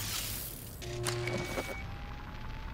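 A computer terminal gives short electronic beeps.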